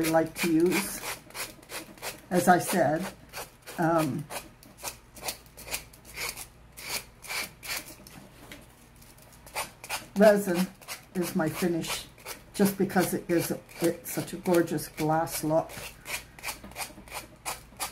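A sponge dabs softly on paper, over and over.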